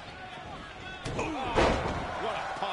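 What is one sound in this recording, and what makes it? A body slams heavily onto a wrestling ring mat with a loud thud.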